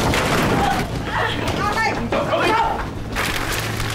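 A young man cries out in strain nearby.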